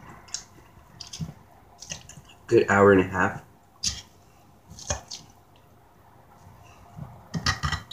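A fork clinks and scrapes against a plate.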